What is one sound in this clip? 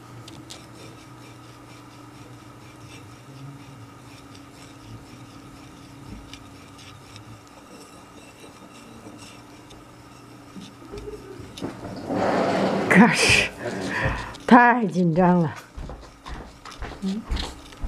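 An ink stick grinds with a soft, wet scraping against a stone slab.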